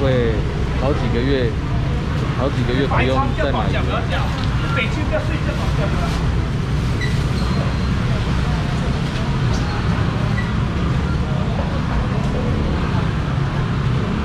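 A busy crowd murmurs and chatters.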